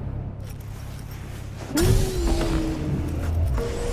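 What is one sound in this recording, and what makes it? A car door opens with a short thud.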